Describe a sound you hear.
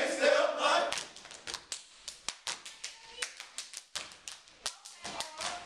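Young men chant loudly together.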